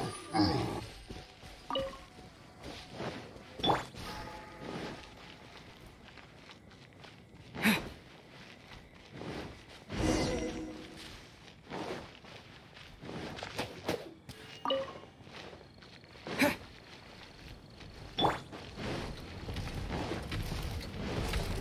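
Footsteps patter on stone and grass.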